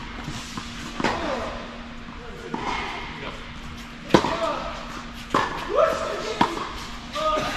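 Tennis balls are struck with rackets in a large echoing indoor hall.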